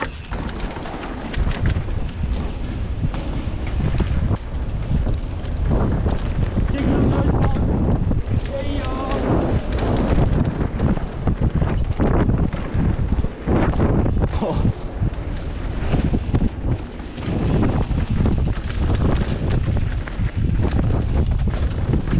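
Bicycle tyres crunch and rattle over a dirt trail.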